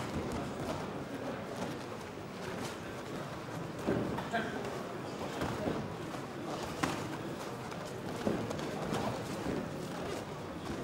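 A crowd murmurs and calls out in a large echoing hall.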